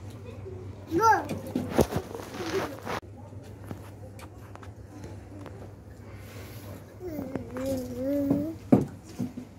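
A toddler babbles softly close by.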